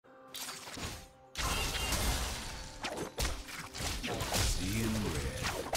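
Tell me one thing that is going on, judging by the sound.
Weapons clash and magic blasts burst in a fast fight.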